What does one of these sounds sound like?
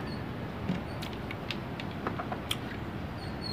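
A plastic jug knocks and clatters as it is handled.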